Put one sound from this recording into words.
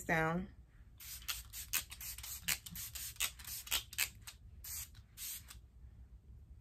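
A spray bottle hisses in quick bursts.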